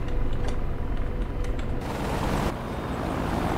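A jet engine hums steadily inside a cockpit.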